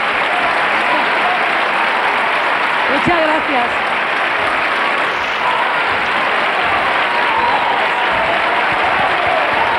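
A large audience applauds and cheers loudly throughout.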